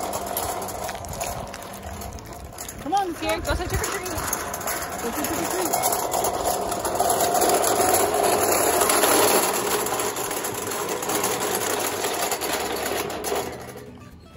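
Small plastic wagon wheels rattle and roll over pavement.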